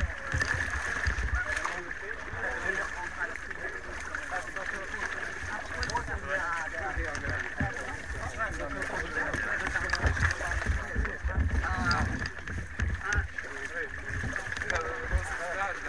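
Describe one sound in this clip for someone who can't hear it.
Men and women chatter together outdoors.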